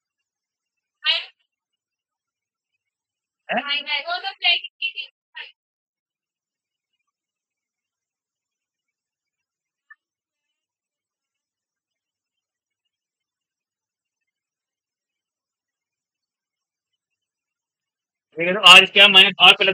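A young man speaks calmly in short bursts, close by.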